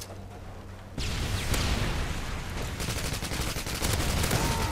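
Gunfire rings out in quick bursts.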